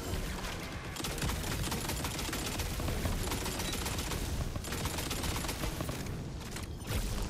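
A heavy energy gun fires in rapid bursts.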